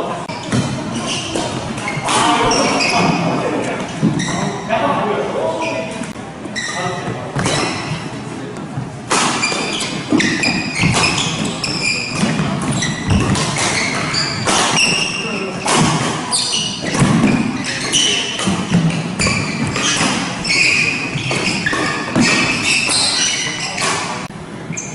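Rackets sharply strike a shuttlecock back and forth in an echoing hall.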